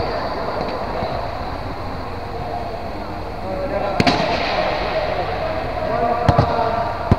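Players call out to each other, echoing in a large hall.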